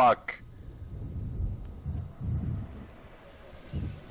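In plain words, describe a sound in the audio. An explosion booms with a deep rumble.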